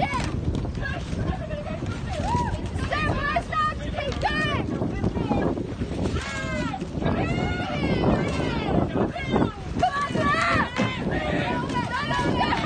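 Oars splash and dip rhythmically in water.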